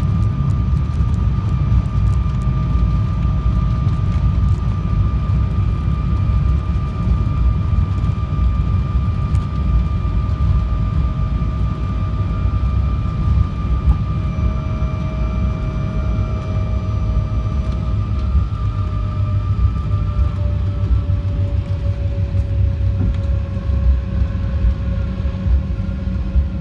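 Tyres rumble over the runway as the plane slows.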